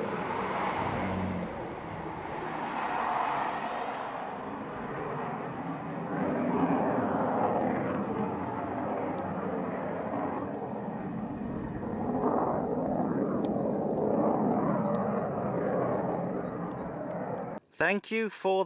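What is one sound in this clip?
A diesel multiple-unit train rumbles past.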